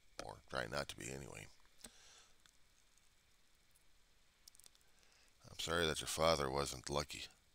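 A middle-aged man speaks calmly into a close headset microphone.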